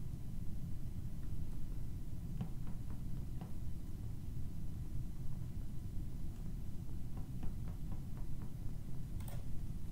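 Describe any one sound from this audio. Soft footsteps patter quickly.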